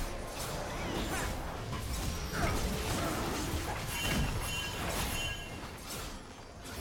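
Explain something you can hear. Magical combat effects whoosh and crackle in a video game.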